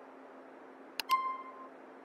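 A mouse click sounds once.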